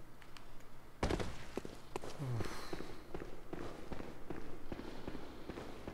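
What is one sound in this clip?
Footsteps run quickly across stone.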